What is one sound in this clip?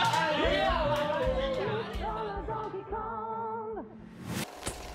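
Young men cheer and shout excitedly.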